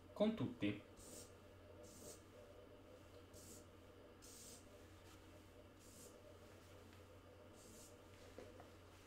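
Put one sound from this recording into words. A marker squeaks and scratches on a whiteboard in short strokes.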